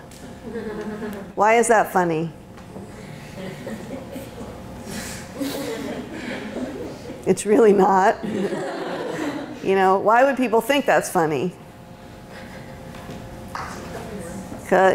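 A woman lectures with animation, heard from across a room.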